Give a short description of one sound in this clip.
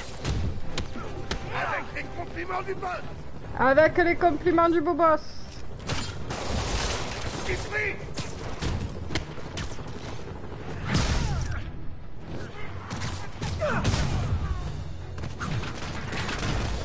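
Punches and kicks thud in a fast fight.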